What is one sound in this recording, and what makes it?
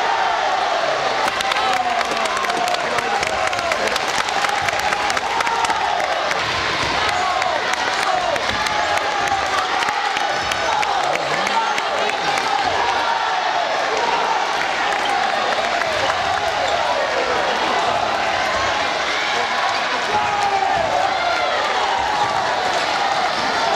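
A crowd of young people shouts and cheers throughout a large echoing hall.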